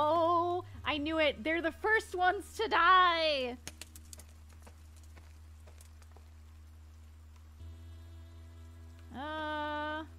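A young woman talks with animation through a microphone, close by.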